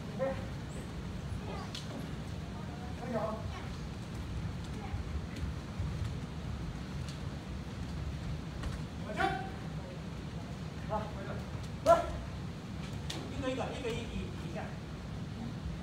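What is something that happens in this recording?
Men shout sharply in a large echoing hall.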